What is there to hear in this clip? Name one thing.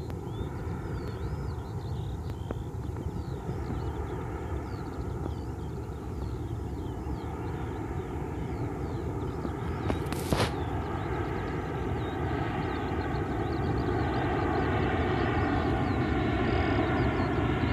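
A drone buzzes overhead and grows louder as it comes closer.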